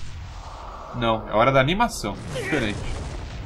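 A young man shouts with strain.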